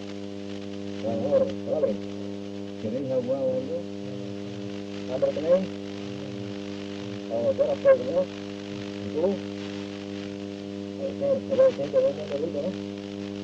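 A middle-aged man talks in short bursts nearby.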